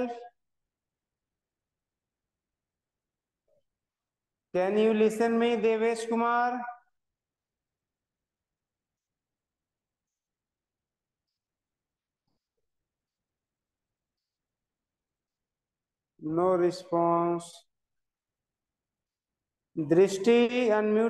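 A man speaks close to a microphone in short bursts, with long silences between.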